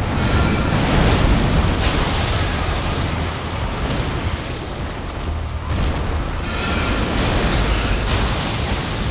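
Fires crackle and burn nearby.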